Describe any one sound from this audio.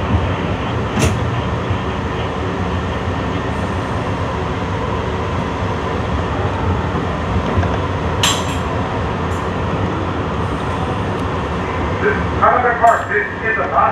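Train wheels click and squeal on the rails.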